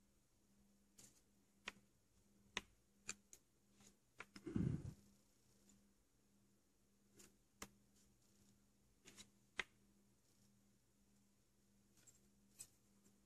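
Small plastic parts click and tap softly as they are handled.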